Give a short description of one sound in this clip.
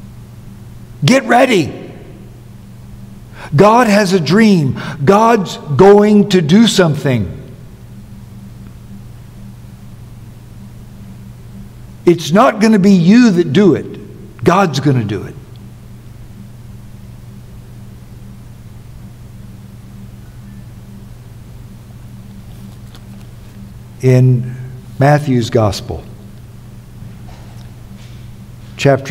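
An elderly man speaks slowly and deliberately through a microphone, with long pauses.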